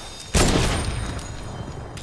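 A gun fires a single loud shot that echoes briefly.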